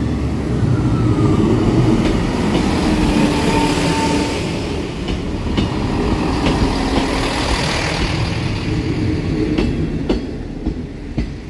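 A train rushes past close by with a loud rumble.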